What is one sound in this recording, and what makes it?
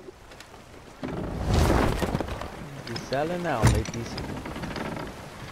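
Waves wash against the hull of a sailing ship.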